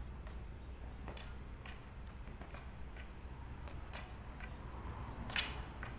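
A hockey stick taps a ball.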